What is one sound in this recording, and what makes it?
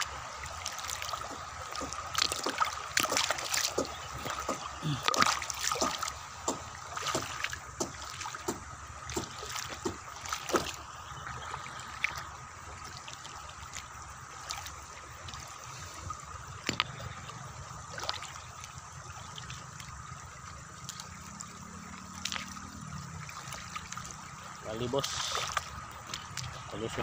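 Shallow water laps gently over pebbles.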